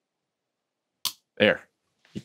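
A memory module snaps into its slot with a click.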